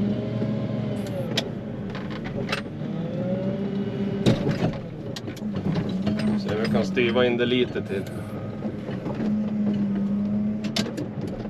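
Metal parts of a loader clank and knock.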